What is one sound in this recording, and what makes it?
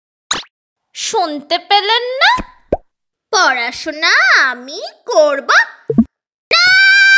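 A teenage girl speaks close by with animation, her voice rising and falling.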